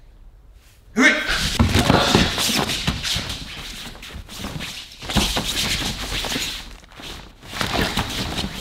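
Two women grunt and strain close by as they wrestle.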